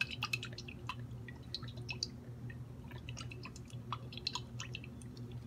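Oil crackles and sizzles in a metal pot.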